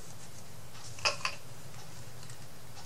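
A paintbrush dabs and taps in a small pot of paint.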